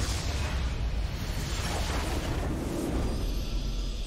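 A battle in a game crashes with spell blasts and explosions.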